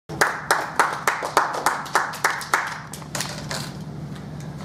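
A small audience applauds, the clapping fading away.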